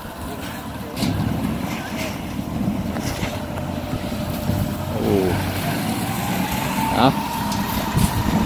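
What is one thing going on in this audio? Water sprays hard from a hose and hisses onto the ground.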